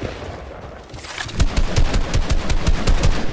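A gun fires in quick bursts.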